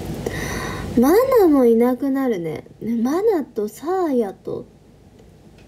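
A young woman speaks close by in a soft, sing-song voice.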